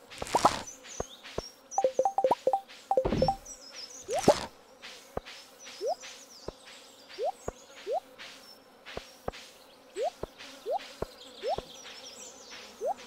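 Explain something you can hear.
Short electronic blips and rising chirps sound one after another.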